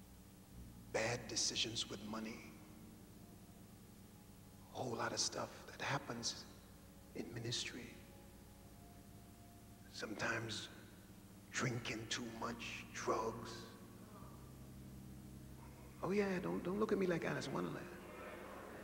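A middle-aged man preaches forcefully into a microphone in short bursts, with pauses between them.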